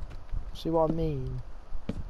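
Wooden blocks break with short cracking knocks.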